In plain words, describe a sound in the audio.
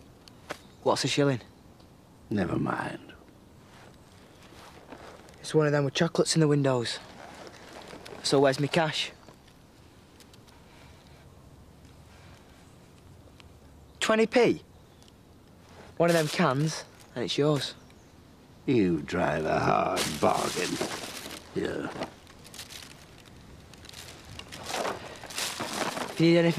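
A teenage boy talks nearby, calmly.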